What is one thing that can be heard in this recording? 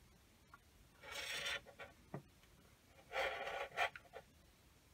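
A hand rubs across a smooth plastic lid.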